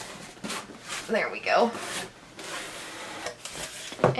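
A cardboard box lid flaps open with a rustle.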